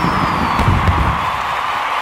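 Fireworks burst and crackle overhead.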